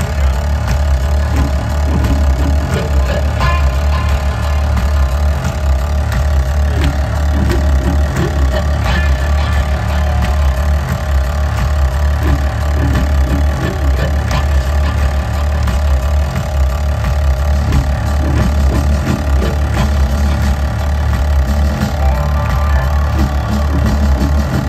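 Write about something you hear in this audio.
A rock band plays loudly through a large outdoor sound system.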